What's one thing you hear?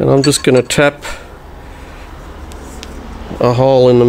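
Steel plates clink against each other as they are handled.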